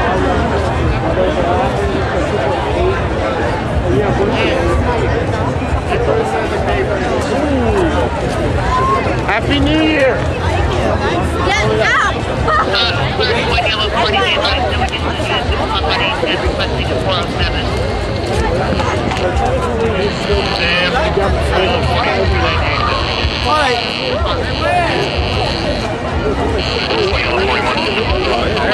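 A large crowd chatters loudly all around outdoors.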